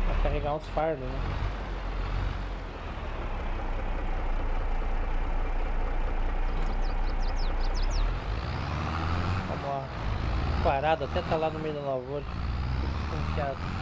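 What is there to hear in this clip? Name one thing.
A tractor engine rumbles steadily and revs as it drives.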